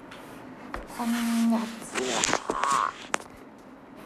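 A young woman speaks softly close to a microphone.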